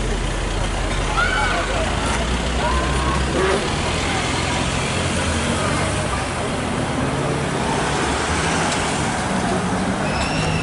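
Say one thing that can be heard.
A sports car engine revs and roars as the car drives off.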